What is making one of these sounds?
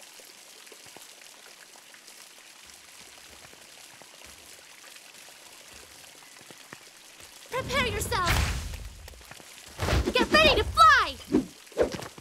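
Footsteps tap lightly on stone paving.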